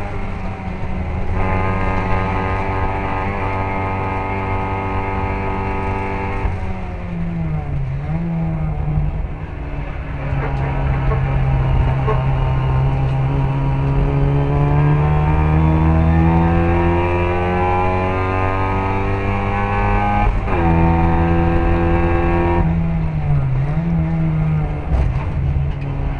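Other racing cars' engines buzz nearby.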